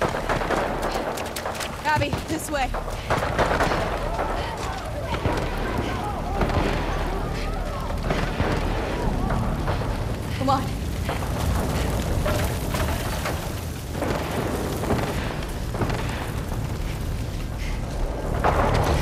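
Footsteps crunch on dirt and creak on wooden boards.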